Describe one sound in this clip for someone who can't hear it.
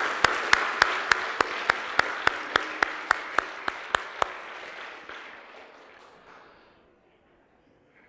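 An audience applauds in a large hall, with the clapping fading away.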